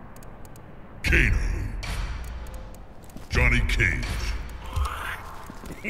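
A deep booming whoosh sounds.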